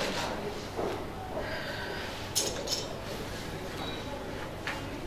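A middle-aged woman speaks calmly into a nearby microphone.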